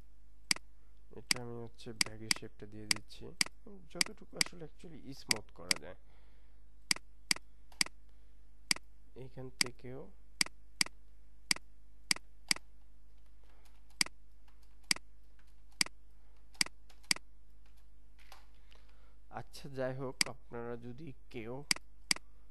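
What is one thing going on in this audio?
A computer mouse clicks sharply, again and again.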